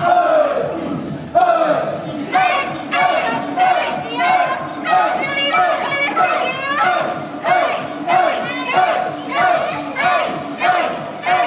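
Upbeat pop music with young women singing plays loudly through a loudspeaker.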